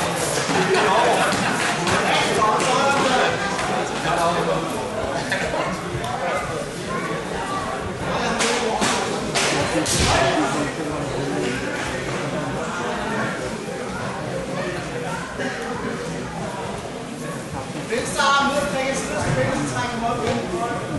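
A crowd of spectators talks and shouts throughout, echoing in a large hall.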